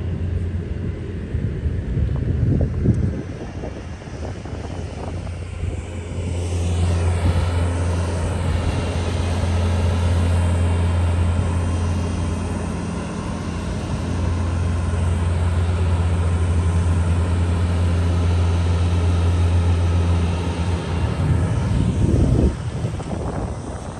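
A pickup truck engine rumbles as it pushes snow with a plow.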